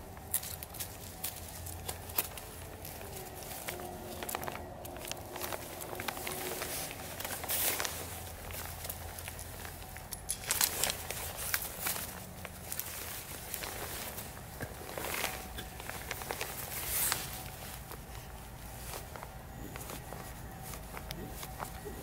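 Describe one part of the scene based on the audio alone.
A knife blade splits wood with sharp cracks.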